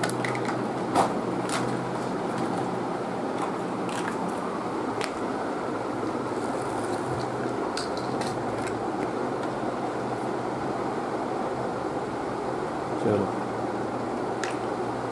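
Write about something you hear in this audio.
Plastic toy pieces click and clatter.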